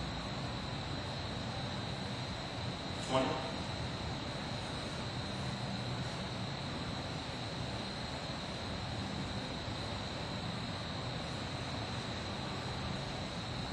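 A body rolls softly on a foam mat.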